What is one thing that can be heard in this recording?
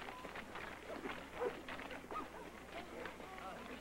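Horse hooves thud as a horse gallops over the ground.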